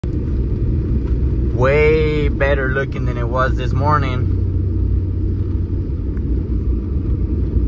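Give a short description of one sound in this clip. Tyres rumble over a snowy road.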